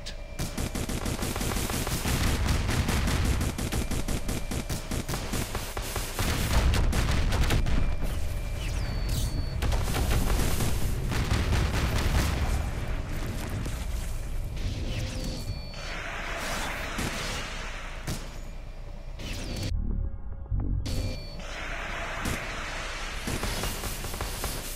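Game monsters fire roaring energy beams with loud blasts.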